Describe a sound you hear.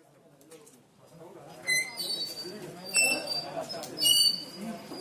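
A cart's wheels rattle as it is pushed.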